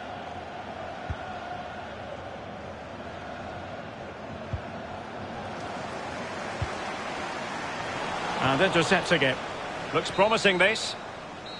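A crowd murmurs steadily in a large stadium.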